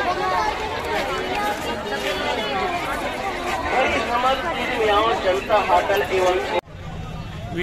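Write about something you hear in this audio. A crowd chatters noisily outdoors.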